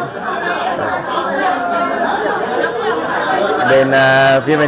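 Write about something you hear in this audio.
A group of women chatter and talk over one another nearby.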